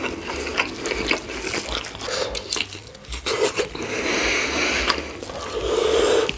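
Gloved hands tear and squelch through saucy roast meat.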